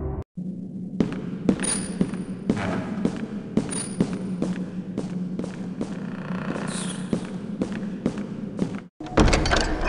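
Footsteps tap down stone stairs at a steady pace.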